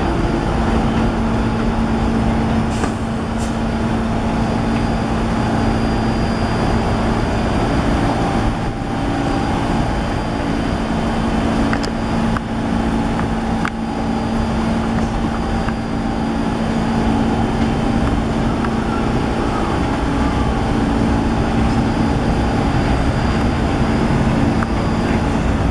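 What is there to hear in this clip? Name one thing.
A subway train rumbles and hums steadily along elevated tracks.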